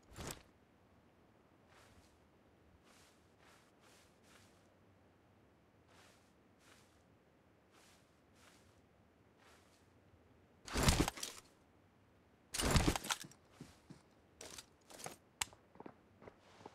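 Grass rustles softly as a figure crawls through it.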